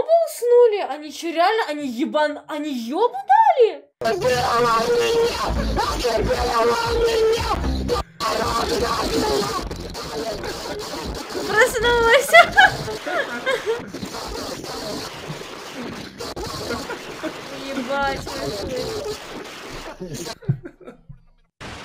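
Several men talk with animation over an online call.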